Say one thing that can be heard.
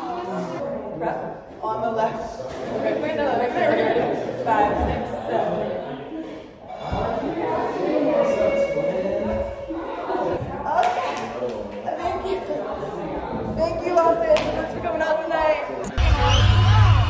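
Young women talk and laugh with animation close by.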